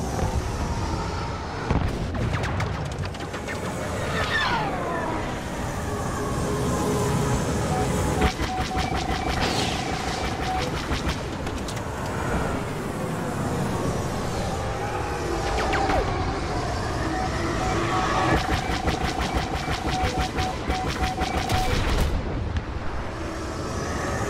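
A starfighter's engines roar steadily.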